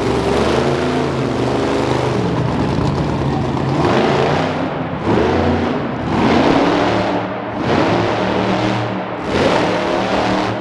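A monster truck engine roars and revs hard, echoing in a large hall.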